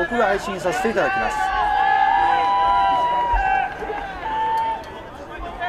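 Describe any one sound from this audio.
A referee's whistle blows sharply several times outdoors.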